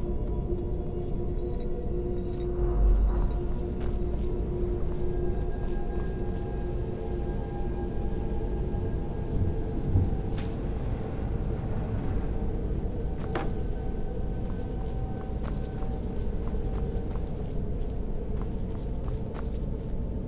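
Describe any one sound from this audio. Footsteps tread slowly on a stone floor.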